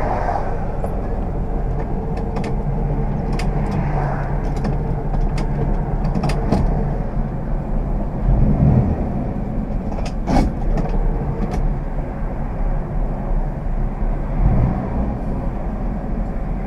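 Wind and road noise rush past an open car window.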